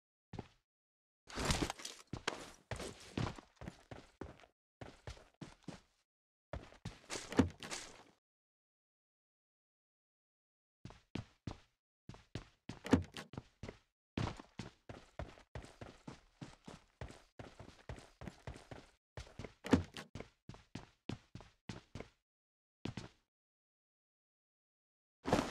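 Footsteps thud quickly on wooden floors and ground.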